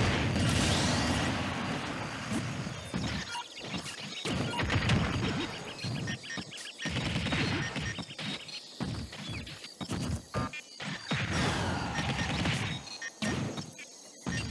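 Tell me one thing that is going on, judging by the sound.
Fighting game hits land with sharp thumps and cracks.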